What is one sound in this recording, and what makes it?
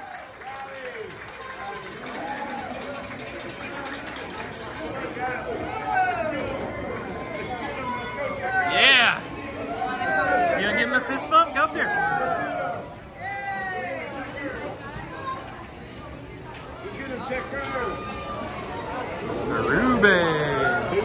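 A crowd of fans cheers and shouts encouragement close by.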